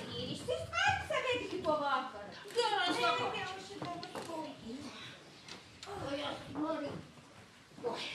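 Women sing together with their voices ringing out.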